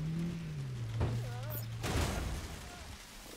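A car crashes into parked vehicles with a loud bang.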